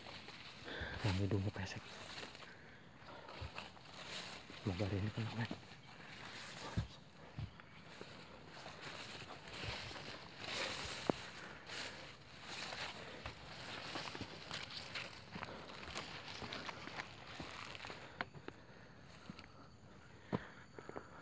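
Leafy plants rustle and brush past at close range.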